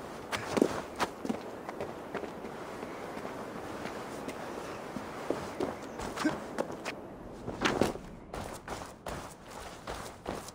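Footsteps crunch over snow and rubble.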